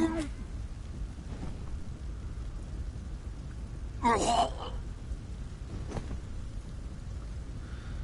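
An elderly man coughs.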